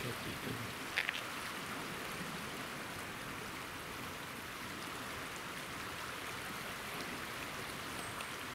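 Muddy floodwater rushes steadily past.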